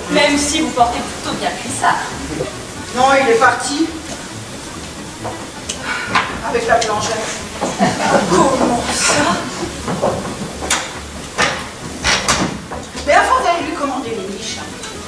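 A woman talks with animation, heard from a distance in a large hall.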